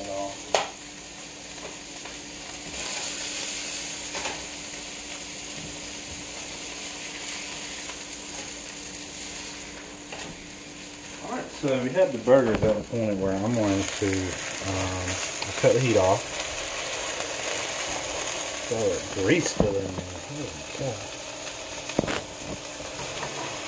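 Meat sizzles in a hot frying pan.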